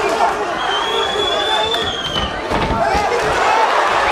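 A body slams onto a padded floor.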